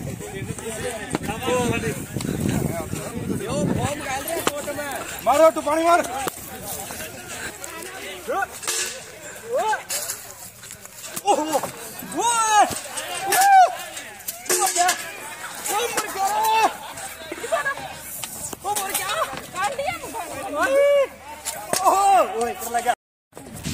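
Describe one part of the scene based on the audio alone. A man shouts and cries out close by.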